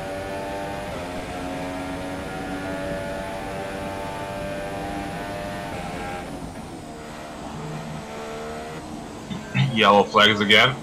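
A racing car engine screams at high revs, then drops in pitch as the car slows.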